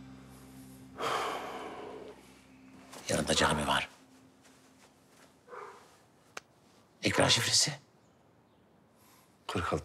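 A man speaks tensely in a low voice, close by.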